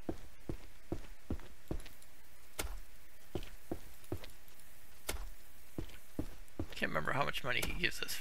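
Footsteps thud slowly on wooden boards.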